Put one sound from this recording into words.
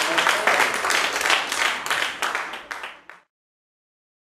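An audience claps and cheers in a hall, then the applause fades out.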